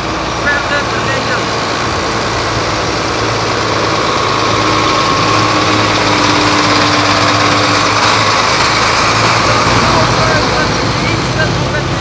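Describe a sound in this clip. A heavy truck engine rumbles close by as it drives past.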